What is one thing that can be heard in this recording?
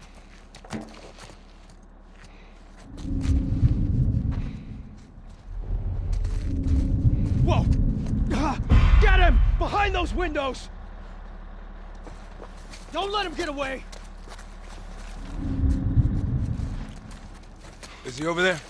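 Footsteps shuffle softly over a gritty floor.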